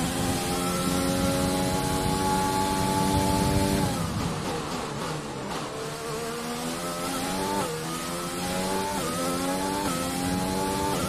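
A racing car engine roars at high pitch, drops sharply as it slows, then revs up again through the gears.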